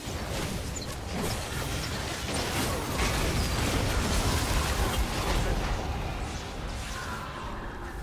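Spell effects crackle and whoosh in a fight with a large monster.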